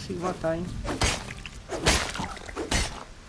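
An axe chops into wood with sharp, repeated thuds.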